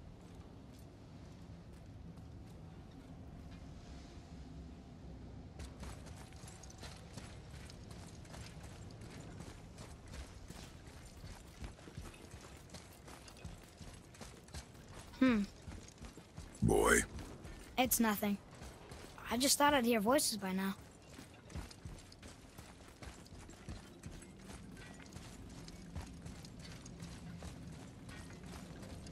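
Heavy footsteps crunch on gravel and stone.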